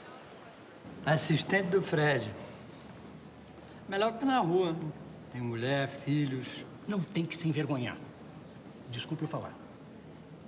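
A middle-aged man talks with animation.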